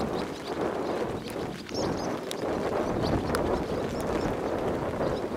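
Wind blusters steadily outdoors.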